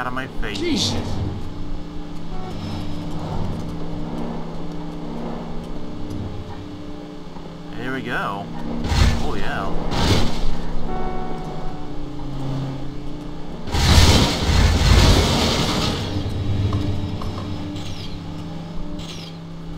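A car engine roars steadily as it speeds along.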